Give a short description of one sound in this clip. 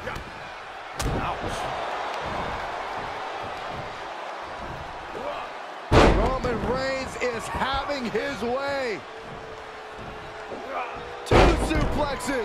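A heavy body slams onto a mat with a loud thud.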